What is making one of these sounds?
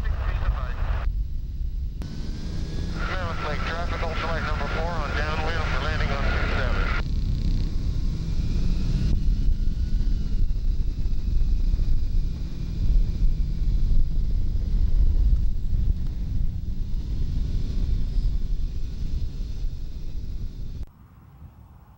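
A small aircraft engine roars up close.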